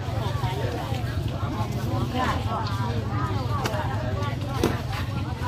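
Many voices of men and women chatter nearby in a busy crowd.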